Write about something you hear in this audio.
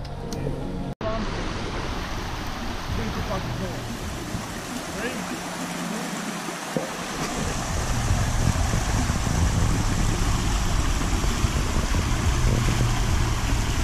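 A shallow stream rushes steadily over rocks outdoors.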